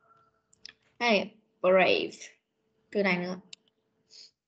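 A woman reads out single words clearly over an online call.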